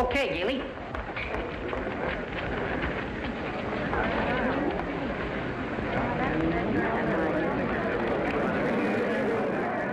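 A small band plays lively dance music.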